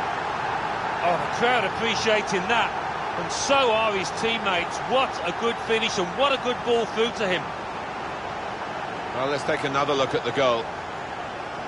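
A man talks casually close to a microphone.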